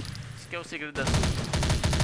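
A submachine gun fires a rapid burst.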